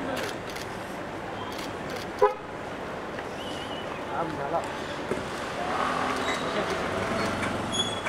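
A young woman talks quietly on a phone.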